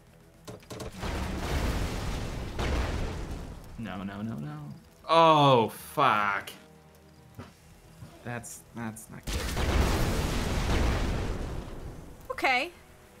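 Gunfire and explosions rumble in a battle.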